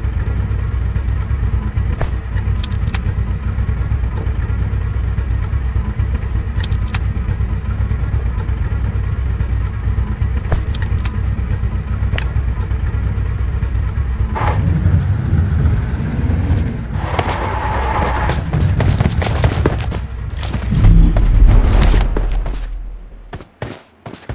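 A vehicle engine rumbles steadily as it drives.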